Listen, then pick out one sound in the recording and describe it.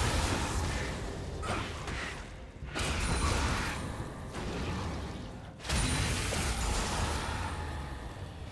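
Magic spells crackle and burst in a busy game battle.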